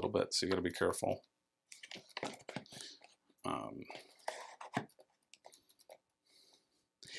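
Small cardboard boxes knock and slide into place.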